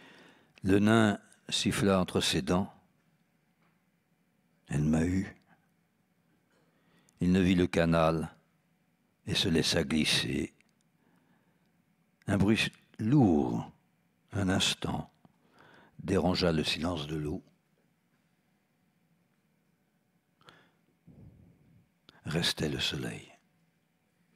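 An elderly man reads aloud calmly through a microphone, with pauses between phrases.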